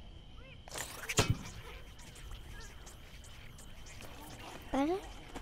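A magical blast whooshes and sparkles.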